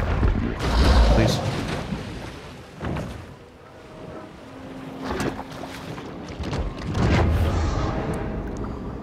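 Water splashes and gurgles as a fish thrashes through shallow water.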